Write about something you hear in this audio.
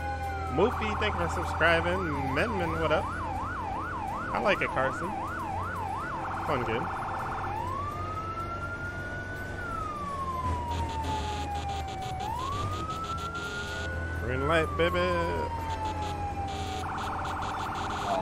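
A siren wails and yelps, switching between fast and slow.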